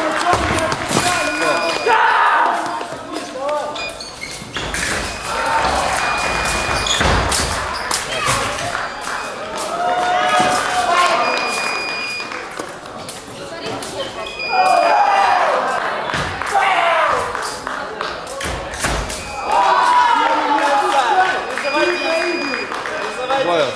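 An electronic scoring box beeps.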